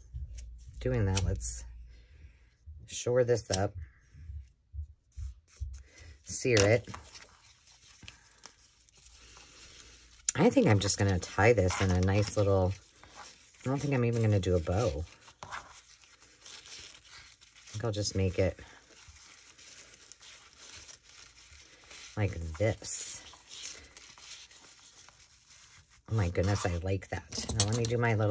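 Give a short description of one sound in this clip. A satin ribbon rustles softly as hands fold and tie it.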